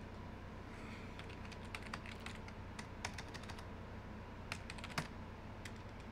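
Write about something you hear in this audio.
Keyboard keys clack in quick bursts.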